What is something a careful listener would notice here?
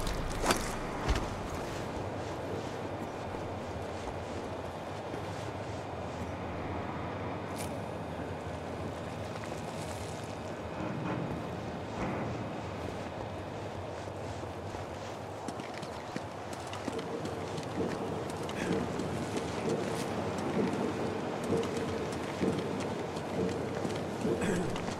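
Soft footsteps shuffle on a hard floor and metal steps.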